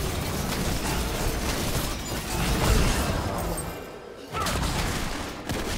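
Magic spells whoosh and crackle with sharp impacts in a fight.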